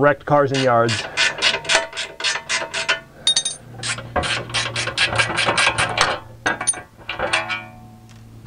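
A ratchet wrench clicks rapidly under a car.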